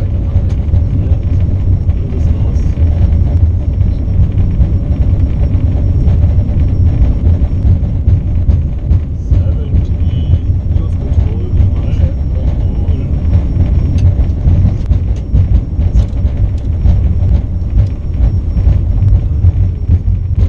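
A jet airliner's engines rumble loudly and steadily inside the cockpit.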